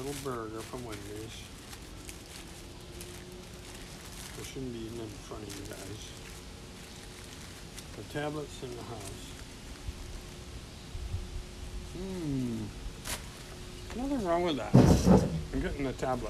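An elderly man talks calmly close by.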